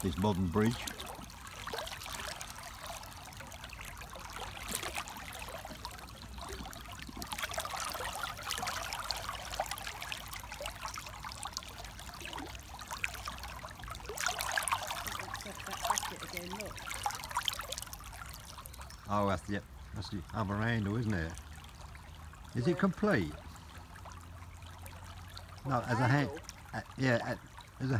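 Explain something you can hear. Shallow water babbles and splashes over stones close by.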